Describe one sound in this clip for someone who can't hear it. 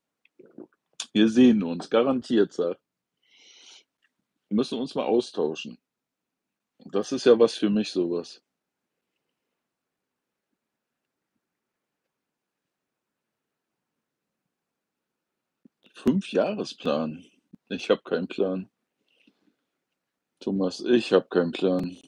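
A middle-aged man talks calmly and close to the microphone, in short bursts with pauses.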